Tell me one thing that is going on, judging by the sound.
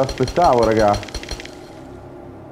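A pickaxe strikes rock.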